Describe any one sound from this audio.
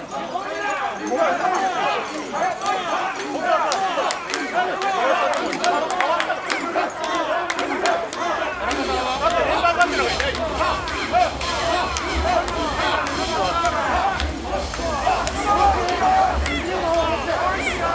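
A large crowd of men chants loudly and rhythmically outdoors.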